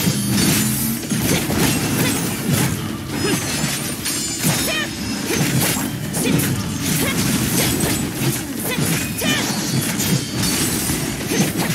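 Explosive blasts and energy bursts boom repeatedly.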